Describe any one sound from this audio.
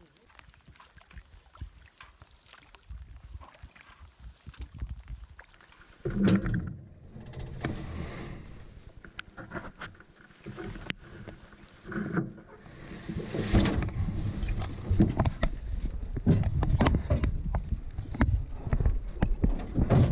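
A paddle dips and splashes in water.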